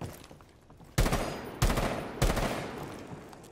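A rifle fires several quick shots.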